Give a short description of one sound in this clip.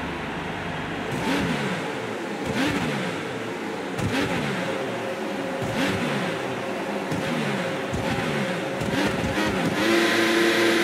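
A racing car engine revs in short bursts while idling.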